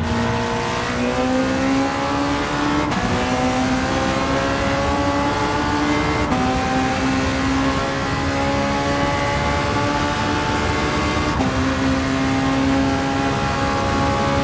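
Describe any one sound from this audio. A racing car engine roars, its pitch rising steadily and dropping sharply at each gear change.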